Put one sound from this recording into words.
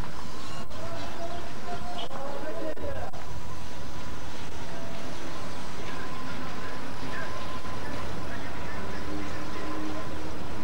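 A crowd murmurs outdoors on a street.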